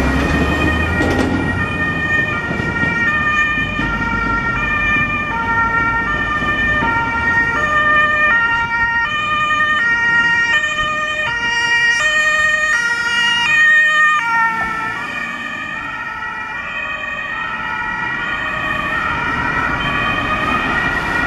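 Traffic rumbles along a road.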